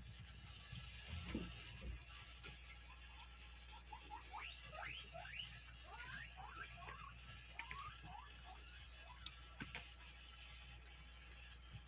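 A toy crinkles as a cat bites and claws it.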